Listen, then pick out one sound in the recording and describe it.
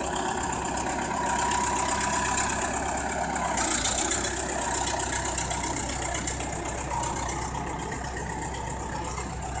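Wet mud scrapes and slides under a bulldozer blade.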